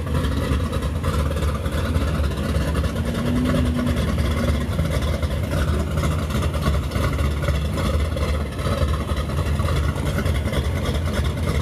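A car engine idles with a deep, loud rumble close by.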